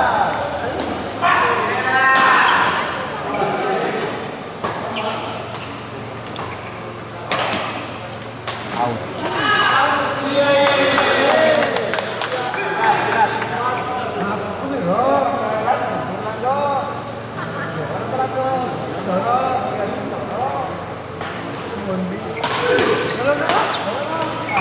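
Men talk and shout in a large echoing hall.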